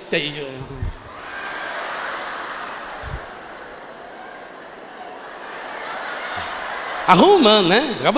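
A large crowd laughs and murmurs.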